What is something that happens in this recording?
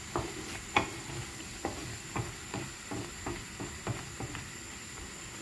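A wooden spoon scrapes and knocks against a frying pan.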